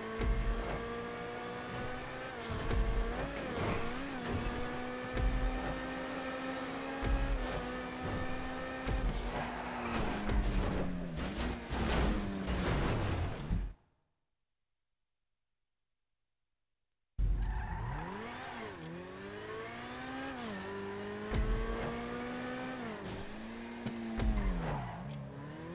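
A sports car engine in a driving game revs and shifts through gears.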